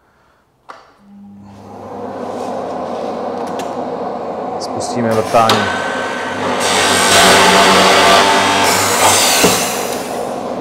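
A drilling machine whirs and hums steadily, growing louder.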